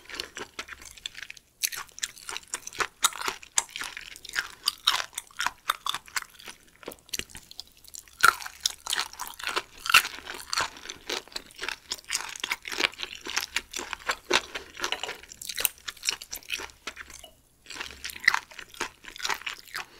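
Metal chopsticks clink against a dish.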